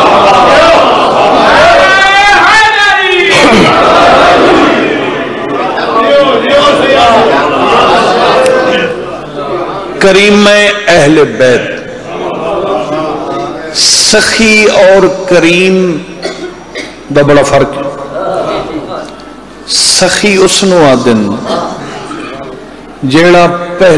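A man speaks with fervour into a microphone, heard loud over a loudspeaker in an echoing room.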